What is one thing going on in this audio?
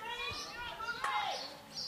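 A hockey stick sharply strikes a ball.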